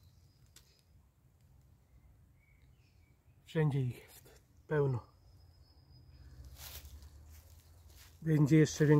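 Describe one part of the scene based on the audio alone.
Dry leaves and twigs crunch underfoot.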